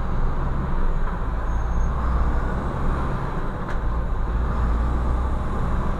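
A motorcycle passes close by.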